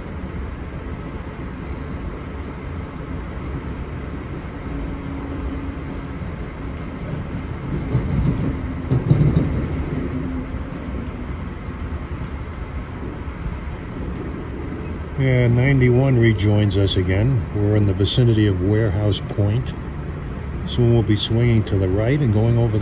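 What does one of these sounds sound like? A vehicle rumbles steadily as it travels along.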